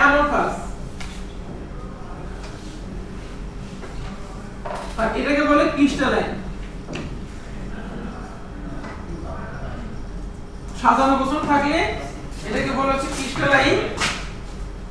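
A man lectures calmly nearby.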